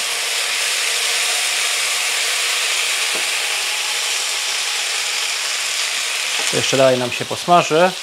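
Food sizzles and hisses in a hot frying pan.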